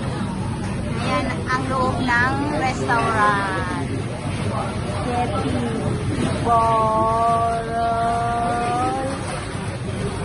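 A young woman speaks close by in a relaxed voice.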